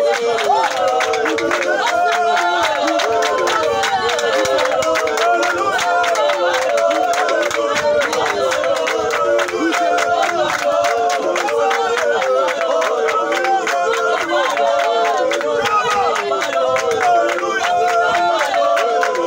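A group of people clap their hands in quick, uneven claps.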